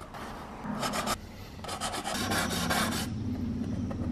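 A marker squeaks and scratches across cardboard.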